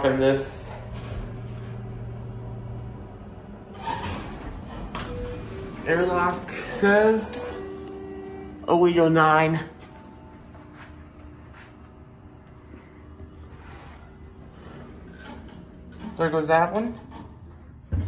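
An elevator chime rings.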